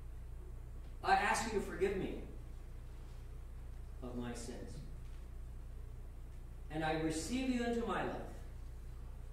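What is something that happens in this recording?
An older man speaks calmly and slowly in a room with slight echo, pausing between phrases.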